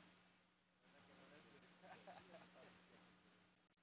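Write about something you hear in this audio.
A man speaks quietly and faintly into a microphone.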